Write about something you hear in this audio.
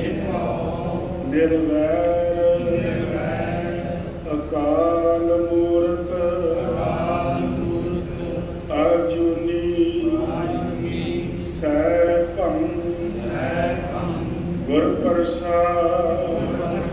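An elderly man sings a devotional chant through a microphone.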